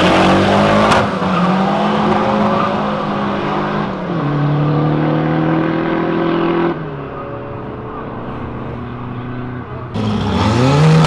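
Car engines roar loudly as cars accelerate away.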